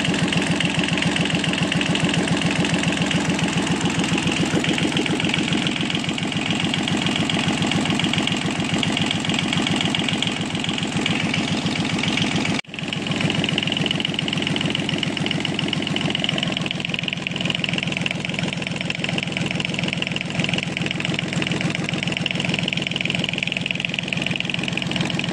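A small diesel engine runs at idle with a loud, rapid clatter.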